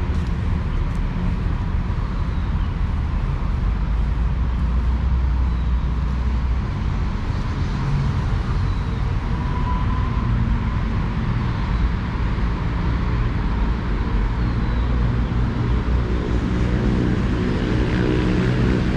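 Wind blows steadily outdoors, rumbling against the microphone.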